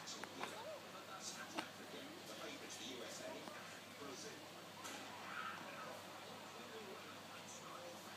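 A baby makes soft cooing and fussing sounds close by.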